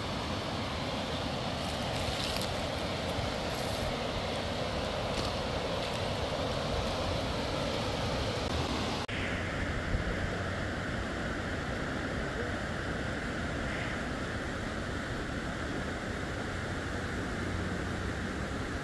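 A shallow mountain stream rushes over rocks outdoors.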